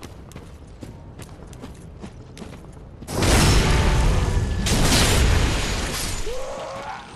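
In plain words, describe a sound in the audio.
A sword slashes and strikes flesh with heavy thuds.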